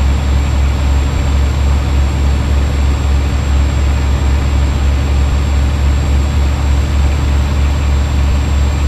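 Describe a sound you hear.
A truck's diesel engine rumbles steadily.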